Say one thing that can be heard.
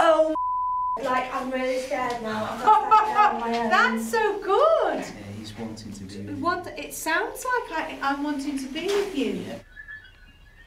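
A young man and young women talk over each other with alarm close by.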